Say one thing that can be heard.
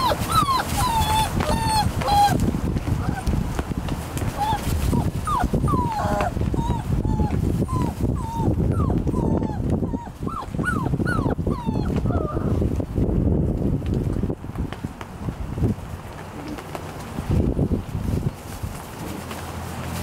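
Puppies scramble and scuffle through rustling wood shavings.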